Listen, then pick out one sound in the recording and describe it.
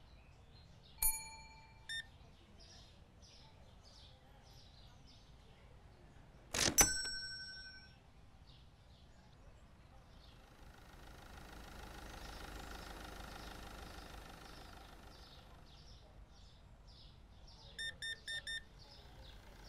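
An electronic payment terminal beeps several times.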